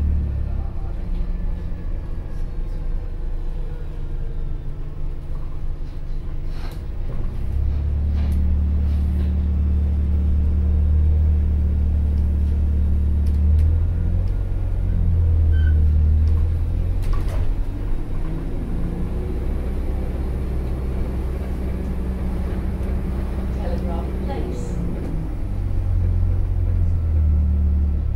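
Loose fittings rattle and knock inside the bus.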